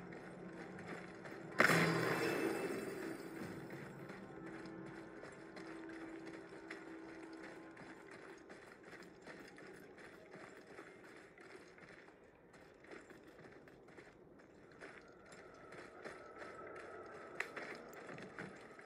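Heavy footsteps crunch over rubble and gravel.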